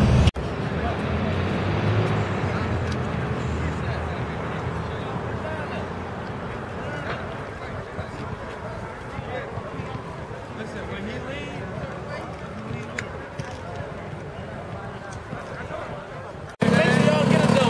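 Quad bike engines idle and rumble outdoors.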